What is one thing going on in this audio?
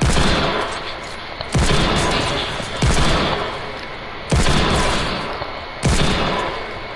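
Loud gunshots fire one at a time, each ringing out and slowly fading.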